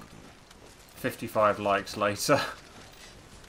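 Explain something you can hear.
A young man talks calmly through a microphone.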